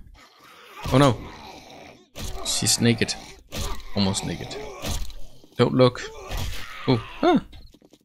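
Knives slash and stab into flesh.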